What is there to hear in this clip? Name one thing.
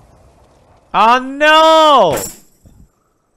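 A man exclaims loudly with a rising and falling voice.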